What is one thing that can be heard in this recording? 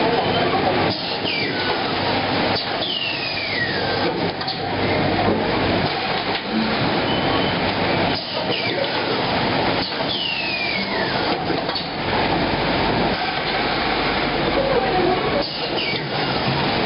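A packing machine rattles and hums loudly and steadily.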